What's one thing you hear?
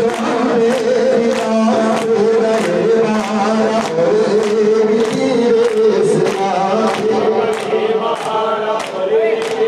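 A group of men chants loudly in a rhythmic mourning lament.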